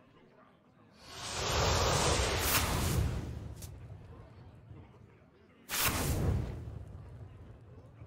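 Whooshing game sound effects play as cards are drawn.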